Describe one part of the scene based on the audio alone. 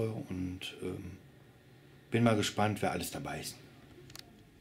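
A man speaks calmly, close to the microphone.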